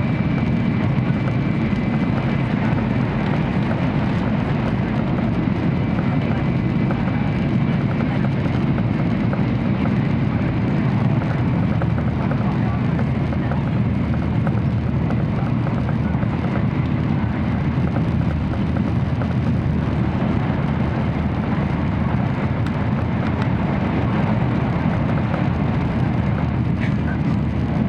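A high-speed train hums and rumbles steadily as it travels, heard from inside.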